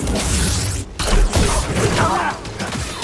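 A lightsaber clashes against metal with a crackle of sparks.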